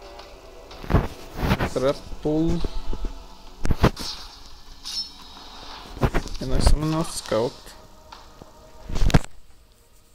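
Short game sound effects thud and swish as cards are played.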